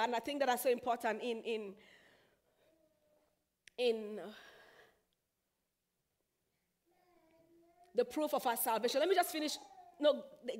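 A young woman sings slowly, with pauses between phrases.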